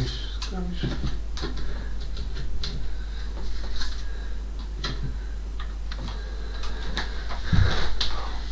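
Objects knock and rustle as a man rummages at the top of a wooden wardrobe.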